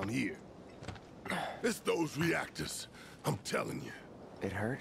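A man speaks in a deep, gruff voice close by.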